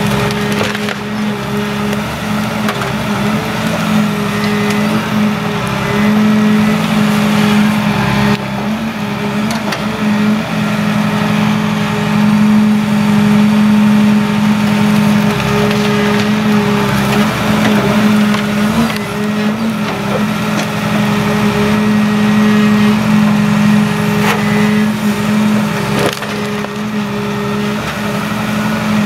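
A forestry machine's diesel engine drones steadily and loudly nearby.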